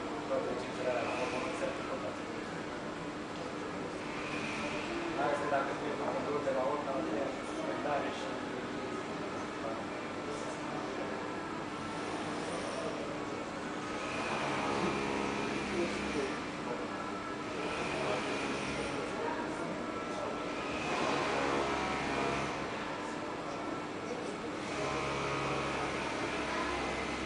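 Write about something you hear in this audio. A young woman sings into a microphone through loudspeakers in a large echoing room.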